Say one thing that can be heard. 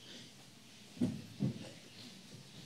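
A chair knocks as a man sits down close to a microphone.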